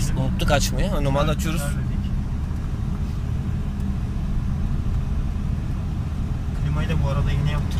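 A car engine hums steadily with road rumble inside a moving car.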